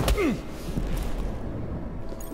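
A heavy blow thuds against a man's body.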